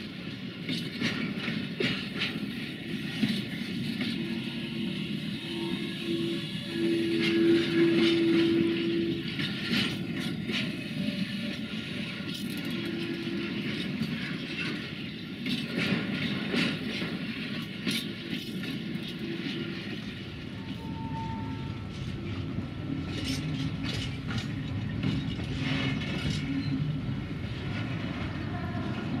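Freight wagons roll slowly past, their wheels clanking over the rail joints.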